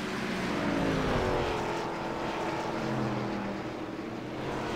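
A racing car engine drones and changes pitch.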